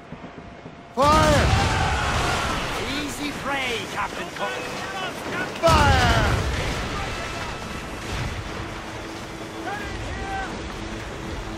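Cannons fire in loud, booming blasts.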